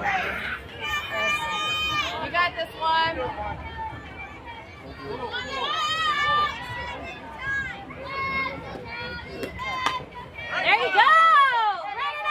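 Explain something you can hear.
Young girls cheer and chant loudly nearby.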